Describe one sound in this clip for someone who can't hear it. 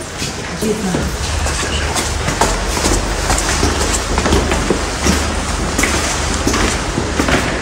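Footsteps of a group shuffle and tap on a hard floor.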